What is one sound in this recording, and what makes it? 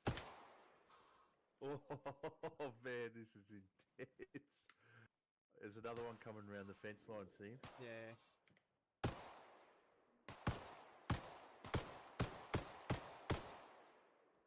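A rifle fires sharp single shots that echo and fade outdoors.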